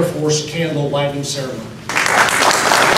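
An elderly man speaks through a microphone in a large room.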